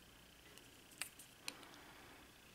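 A small switch clicks.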